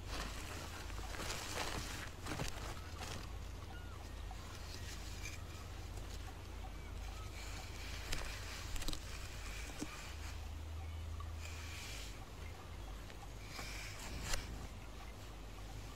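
Dry leaves and twigs rustle and crackle under hands digging in the ground.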